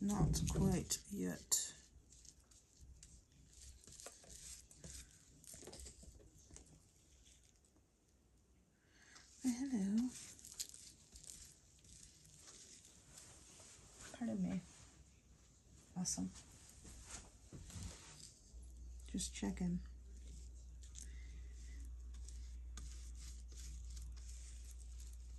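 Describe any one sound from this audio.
A brush dabs and swishes softly across a surface.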